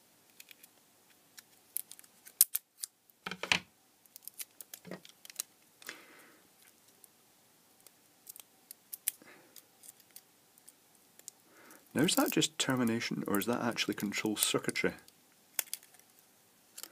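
Small electronic parts click and tap as hands handle them.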